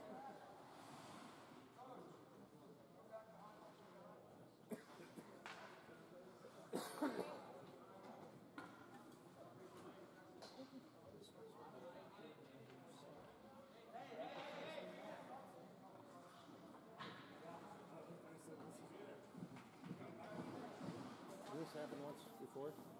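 Skates scrape across ice in the distance.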